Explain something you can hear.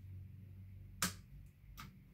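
A fan switch clicks.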